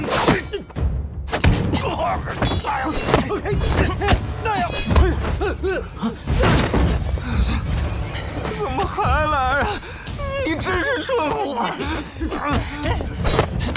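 Fists and sticks strike and whoosh in a scuffle.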